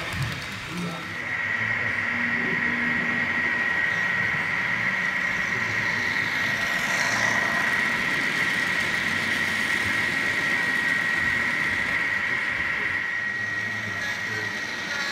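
A model locomotive's motor hums with a steady high whine.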